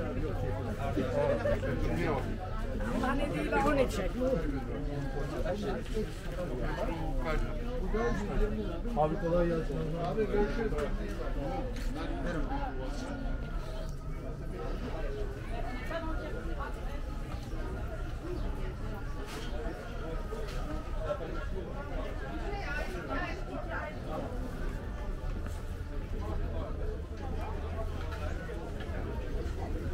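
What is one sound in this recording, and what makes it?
Men and women chatter all around outdoors in a busy street.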